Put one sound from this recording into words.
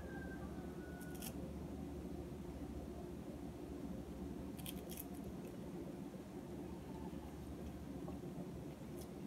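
Fruit pieces drop with light taps into a glass dish.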